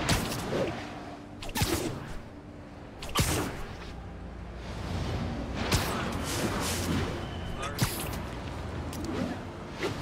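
Webs shoot out with sharp, quick thwips.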